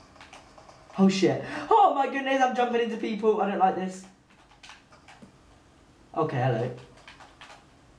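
A young man speaks with animation into a microphone, close up.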